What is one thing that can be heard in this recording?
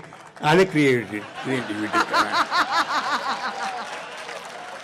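An audience of older men laughs heartily outdoors.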